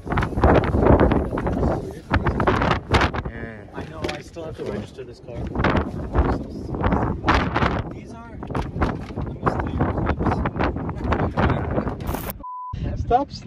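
A man talks with animation close by, outdoors.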